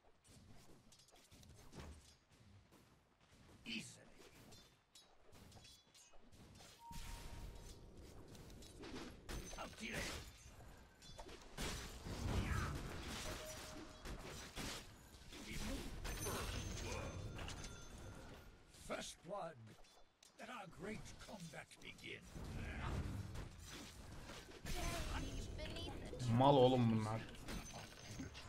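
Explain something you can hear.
Game combat sounds clash and crackle with spells and hits.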